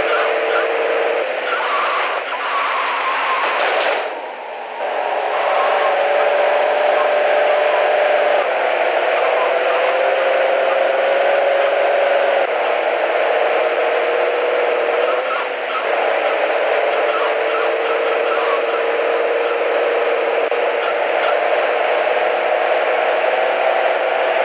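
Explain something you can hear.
A car engine drones steadily as the car drives.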